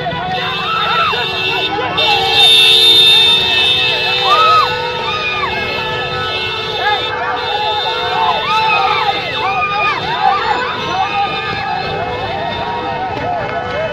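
A crowd of men shouts and cheers excitedly nearby.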